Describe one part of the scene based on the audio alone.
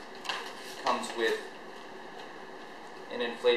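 Paper and plastic packaging rustles.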